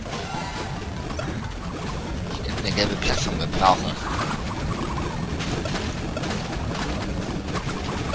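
A cartoon character spins with a whooshing sound.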